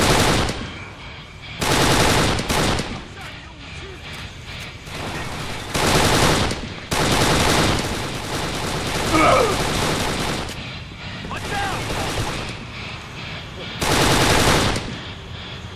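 An automatic rifle fires loud short bursts in a large echoing space.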